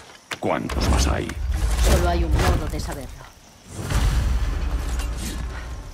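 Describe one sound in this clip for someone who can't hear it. A heavy wooden chest lid creaks and thuds open.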